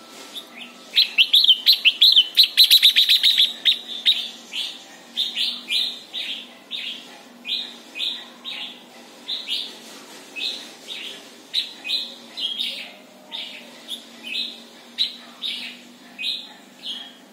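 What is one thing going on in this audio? A caged bird sings loud, rapid, repeated chirping calls.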